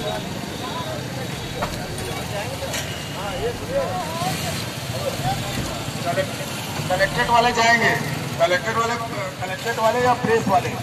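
A vehicle engine idles.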